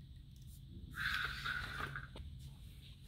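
A plastic lamp rattles and knocks against a hard floor as a hand moves it.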